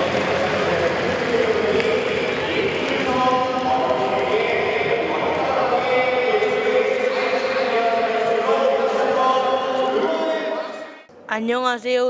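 A crowd cheers in a large stadium.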